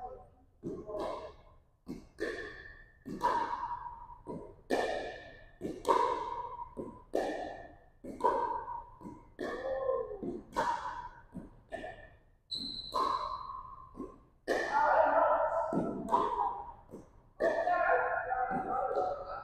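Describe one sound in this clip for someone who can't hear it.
Paddles strike a plastic ball with sharp hollow pops in an echoing hall.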